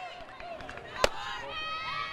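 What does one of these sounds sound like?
A bat cracks sharply against a softball.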